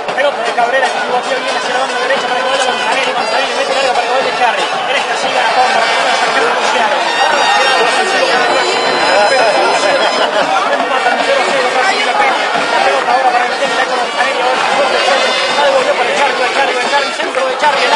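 A crowd chants and shouts steadily across an open field.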